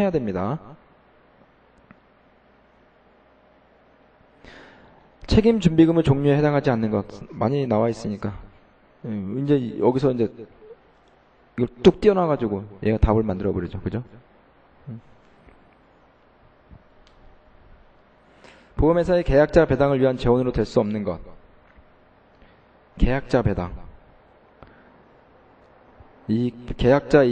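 A man speaks calmly into a microphone, lecturing with pauses.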